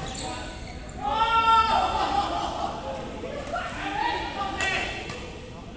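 Young men call out to each other on the court.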